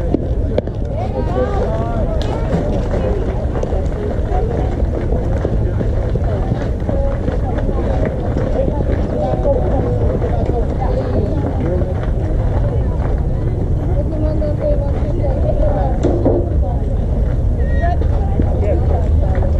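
Players and spectators shout and cheer outdoors.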